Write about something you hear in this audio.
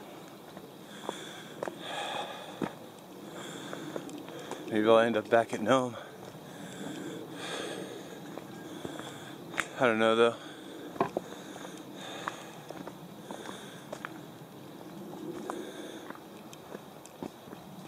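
Footsteps crunch steadily on a dirt trail.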